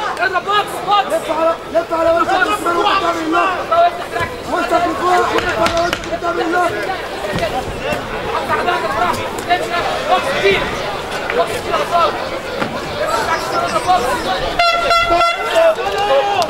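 Fists thud against a body in quick blows.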